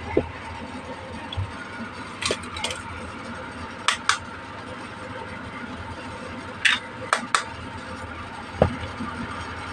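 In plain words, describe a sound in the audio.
Plastic toy pieces click and tap as hands handle them.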